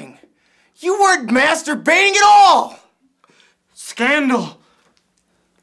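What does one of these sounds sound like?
A young man shouts with animation close by.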